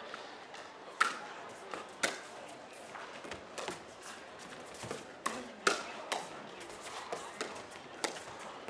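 Paddles hit a ball back and forth with sharp pops.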